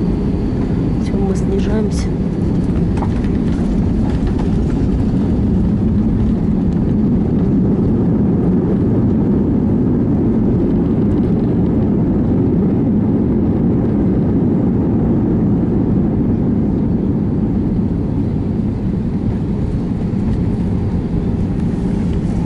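A jet's engines roar steadily as the plane rolls down the runway.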